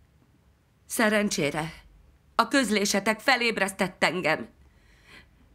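A middle-aged woman speaks calmly and warmly, close by.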